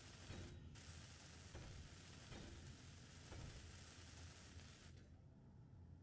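A welding tool hisses and crackles with sparks.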